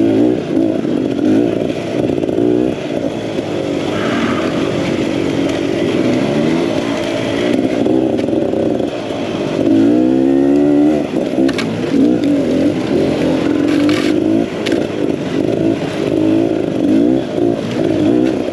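Tyres crunch and scrape over dirt and rocks.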